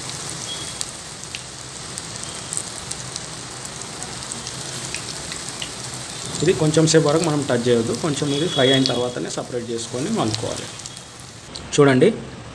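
Oil sizzles and crackles steadily as food fries.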